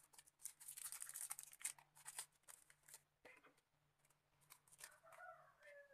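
A thin plastic bag crinkles in hands.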